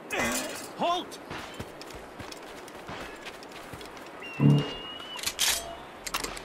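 Footsteps crunch over dirt and grass.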